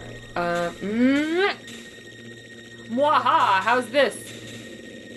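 Short electronic game tones beep and warble in rising and falling glides.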